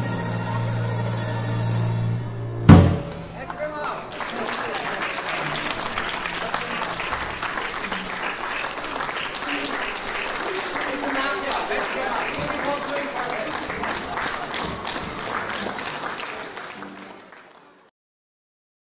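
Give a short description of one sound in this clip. A small band plays lively swing music outdoors.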